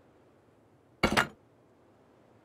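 A sharp thud sounds as an object drops to the ground.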